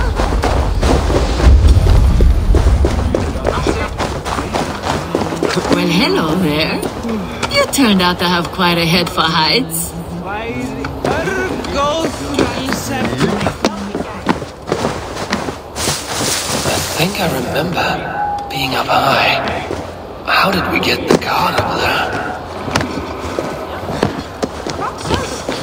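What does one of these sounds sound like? Footsteps crunch on snow and stone.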